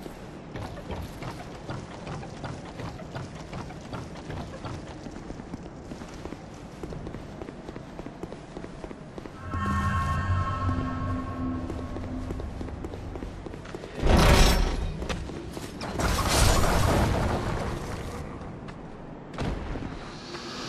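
Footsteps patter quickly on stone and grass.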